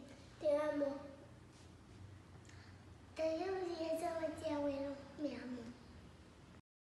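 Young children speak together cheerfully, close by.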